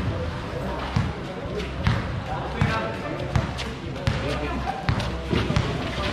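A basketball bounces on a hard court, echoing under a large roof.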